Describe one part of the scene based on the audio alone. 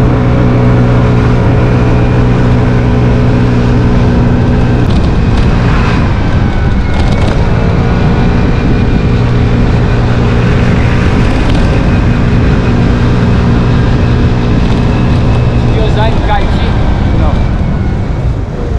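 An engine hums steadily as a vehicle drives along a road.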